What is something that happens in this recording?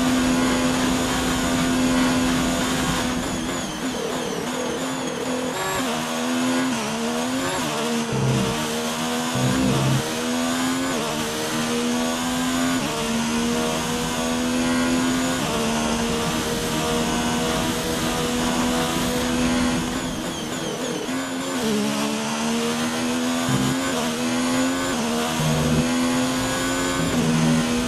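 A racing car engine screams at high revs, dropping in pitch through downshifts and climbing again as it accelerates.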